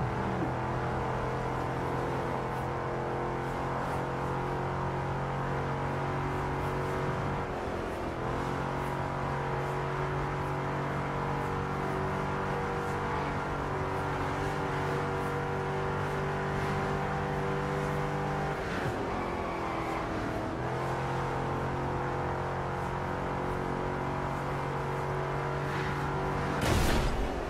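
A race car engine roars steadily at high speed, dropping briefly as gears shift.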